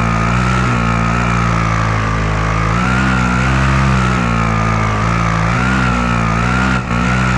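An off-road buggy engine drones loudly and its pitch rises and falls as it shifts gears.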